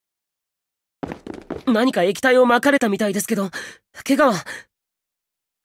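A young man speaks with concern.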